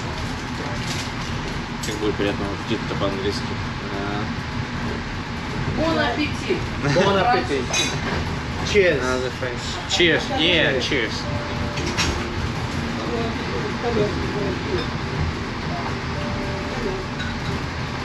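A fork and knife clink and scrape on a plate.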